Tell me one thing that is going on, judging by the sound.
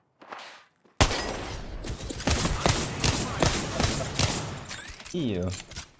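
Gunshots crack in rapid bursts.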